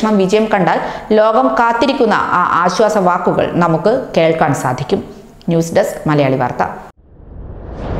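A young woman speaks steadily and clearly into a microphone.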